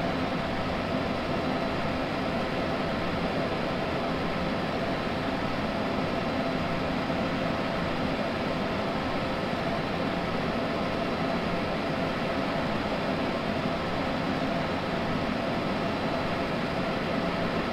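An electric train hums steadily from inside the cab.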